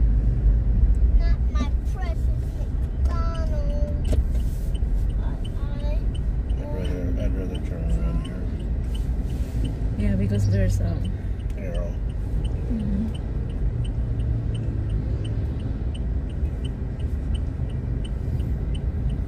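A car's engine hums and its tyres rumble steadily on the road.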